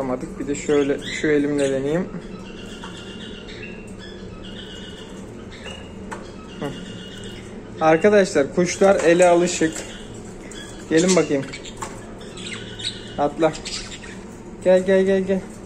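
Budgies chirp and twitter close by.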